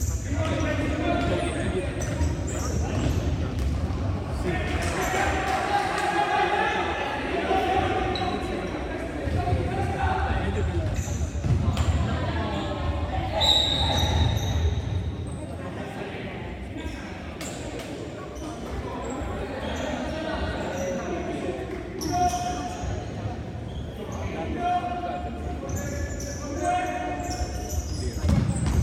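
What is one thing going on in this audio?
A ball thuds on a hard floor and echoes in a large hall.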